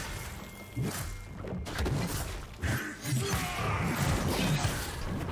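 Fighting sound effects clash and thump in quick bursts.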